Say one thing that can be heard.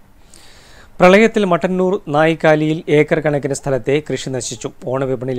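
A man speaks clearly and steadily, reading out news close to a microphone.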